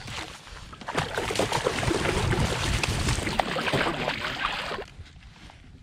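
Water splashes as a fish is lifted from the sea.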